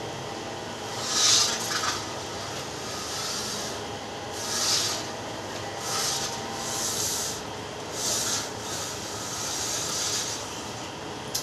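A window slides along its track with a rushing scrape.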